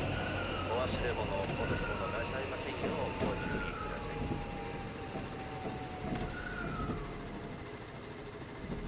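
An electric train's motor whines and slowly falls in pitch as it brakes.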